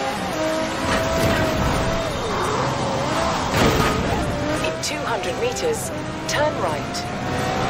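A racing car engine roars at high revs, its pitch rising and falling with gear changes.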